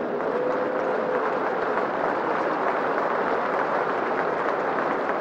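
A large crowd applauds steadily outdoors.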